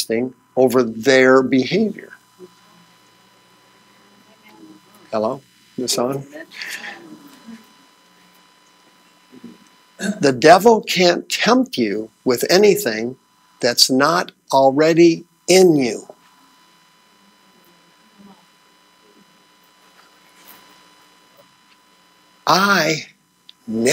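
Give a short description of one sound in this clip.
A man speaks with animation to an audience, with long pauses.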